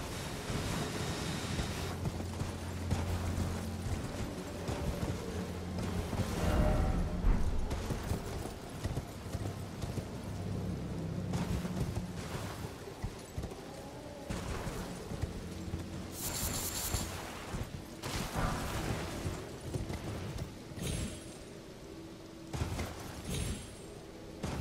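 A horse gallops, its hooves thudding on the ground.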